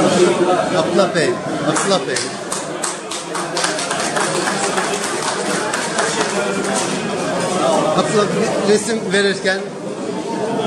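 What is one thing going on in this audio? People clap their hands.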